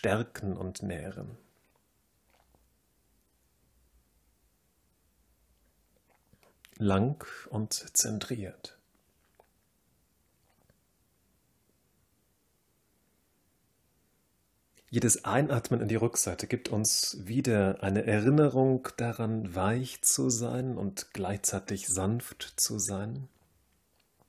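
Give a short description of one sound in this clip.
A man speaks calmly, close by, with long pauses.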